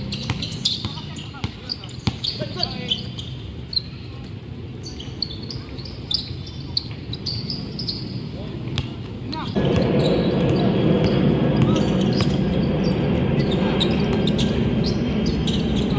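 Basketball shoes squeak on a hard court.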